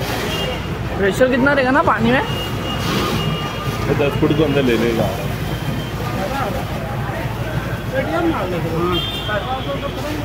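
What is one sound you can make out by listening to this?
Several men talk excitedly nearby outdoors.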